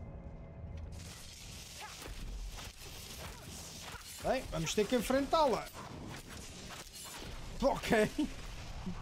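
Blows and magic blasts crash in a fierce fight.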